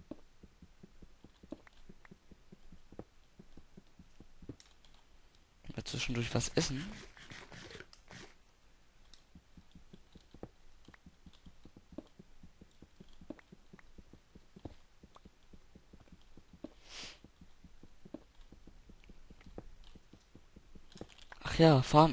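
A pickaxe chips at stone with quick, repeated taps.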